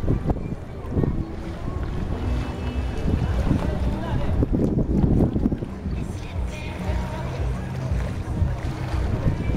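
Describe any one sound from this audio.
Small waves lap and splash.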